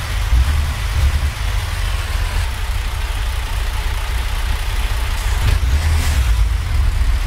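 A truck's diesel engine idles with a low, steady rumble.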